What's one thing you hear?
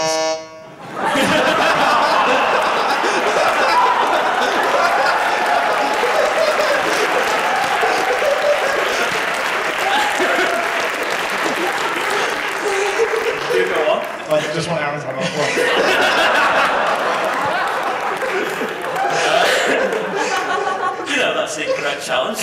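Several men and a woman laugh loudly.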